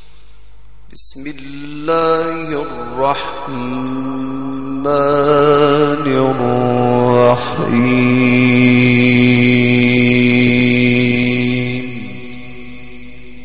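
A man chants in a long, melodic voice through a microphone with a loud echo, rising and then holding a long note before fading.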